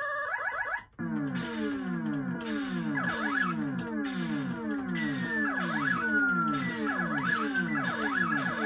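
A space shooter game warbles and zaps steadily.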